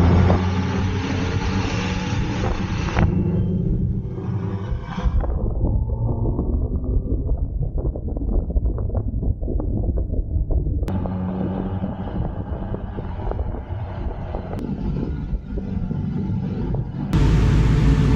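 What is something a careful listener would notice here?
A motorcycle engine roars loudly at speed.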